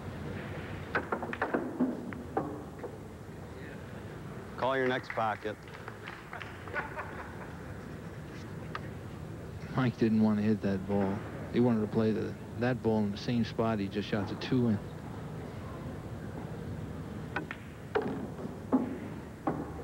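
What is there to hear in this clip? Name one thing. Pool balls click sharply against each other on a table.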